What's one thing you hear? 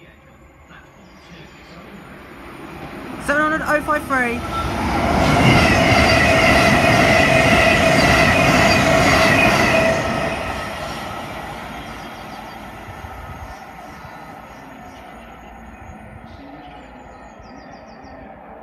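An electric multiple-unit train rushes past at speed, then fades into the distance.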